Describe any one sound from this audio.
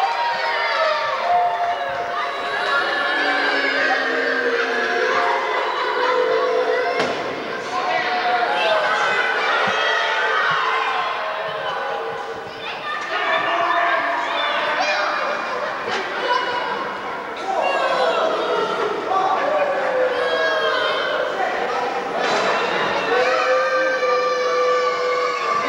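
A crowd of children shouts and jeers loudly in a large echoing hall.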